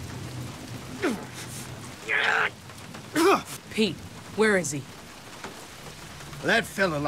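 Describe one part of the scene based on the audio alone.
A man speaks in a strained, breathless voice nearby.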